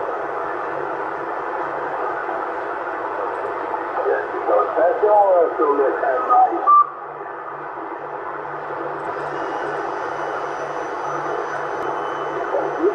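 A CB radio receiver hisses with static.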